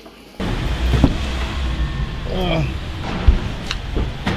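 A car door opens and thuds shut.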